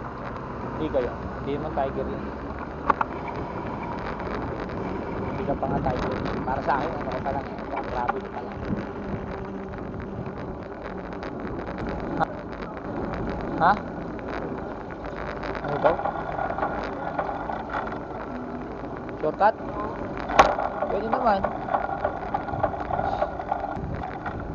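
A bicycle rolls along a street with a steady rattle.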